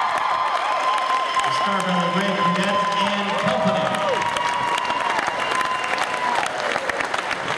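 Young people in a crowd whoop and cheer loudly.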